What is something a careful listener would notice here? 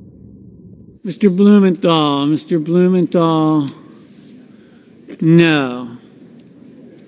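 A man calls out clearly through a microphone in a large echoing hall.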